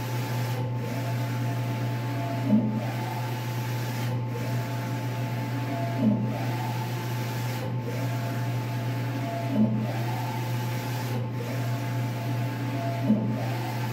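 A print head whirs back and forth across the printer, with a soft knock at each turn.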